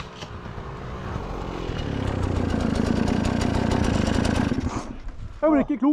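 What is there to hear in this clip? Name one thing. A motorbike engine revs loudly nearby.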